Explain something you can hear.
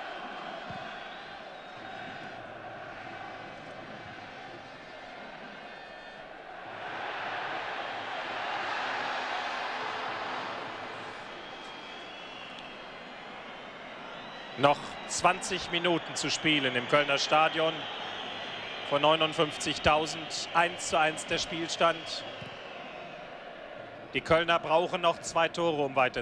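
A large stadium crowd murmurs and roars, swelling loudly for a while.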